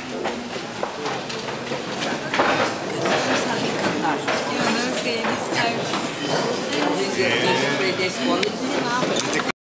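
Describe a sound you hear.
A crowd of men and women chatter at once in a busy room.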